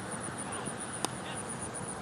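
A cricket bat knocks a ball with a sharp crack in the distance.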